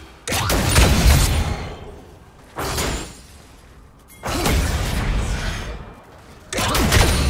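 Fantasy battle sound effects burst and clash in quick succession.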